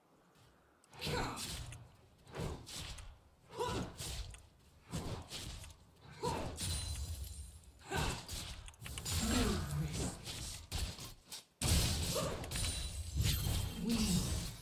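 Fantasy spell effects whoosh and crash in a video game battle.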